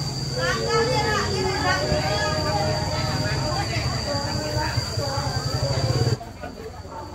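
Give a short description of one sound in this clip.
A middle-aged woman speaks cheerfully close to the microphone.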